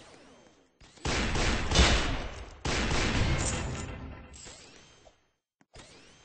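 Gunshots blast loudly in quick succession, with long booming echoes.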